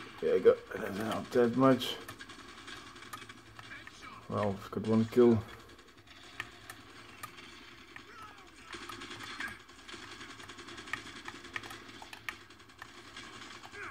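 Buttons on a game controller click softly.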